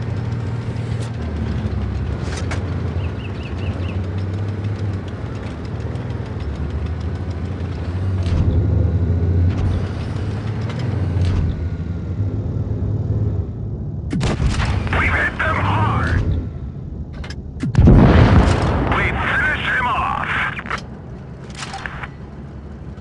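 Tank guns fire with sharp booming shots.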